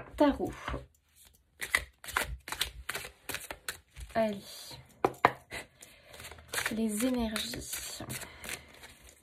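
Cards riffle and slap softly as they are shuffled by hand.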